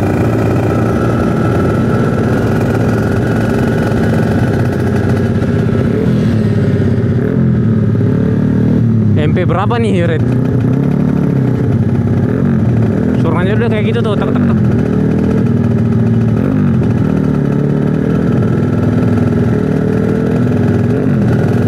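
A motorcycle engine hums steadily up close, rising and falling in pitch as it changes speed.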